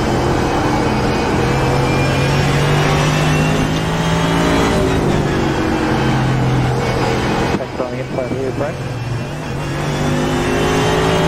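A racing car engine roars loudly at high revs and drops as the car slows.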